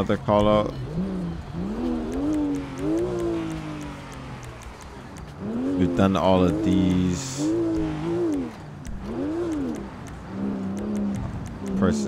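A car engine revs up and down as the car speeds along.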